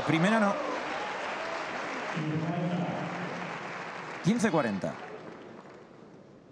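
A large crowd cheers and applauds in an echoing hall, then fades.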